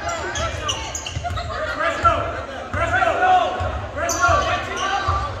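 Players and spectators call out and shout in an echoing gym.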